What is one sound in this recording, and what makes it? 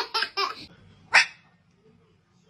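A cat yowls loudly.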